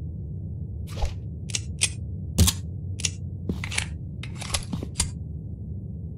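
Sharp metallic clicks sound several times in quick succession.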